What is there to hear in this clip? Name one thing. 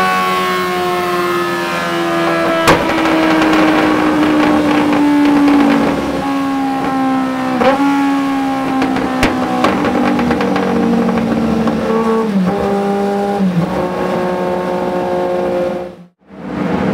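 A motorcycle engine roars loudly through its exhaust, its pitch slowly dropping.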